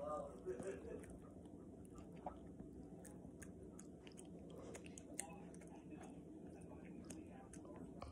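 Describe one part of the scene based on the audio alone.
A metal tag on a dog's collar jingles softly.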